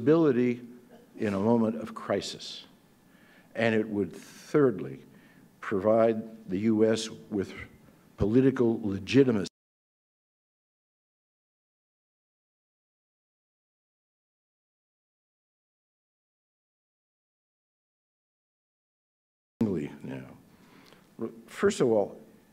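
An elderly man speaks steadily into a microphone, his voice carried through a loudspeaker in a large room.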